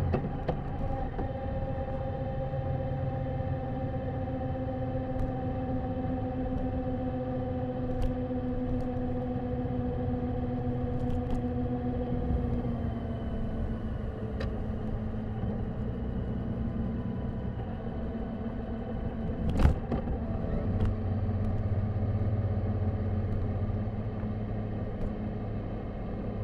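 A motorcycle engine hums steadily, its pitch dropping as the bike slows.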